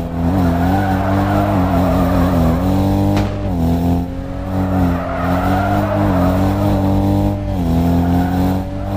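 A car engine revs high and steady, shifting pitch as it drifts.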